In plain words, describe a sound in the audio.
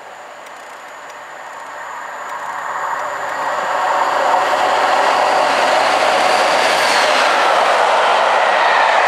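A diesel locomotive approaches and roars past, growing steadily louder.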